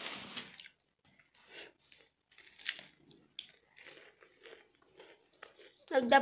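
A young woman chews food noisily.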